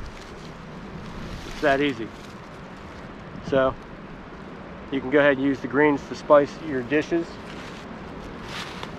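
Dry leaves rustle under a man's hands.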